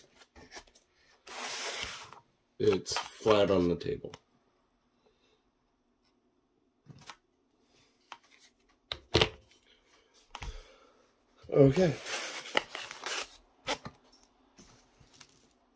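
Light foam pieces tap and scrape on a hard surface.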